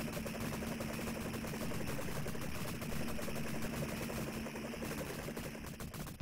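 Rapid gunfire rattles in an arcade game.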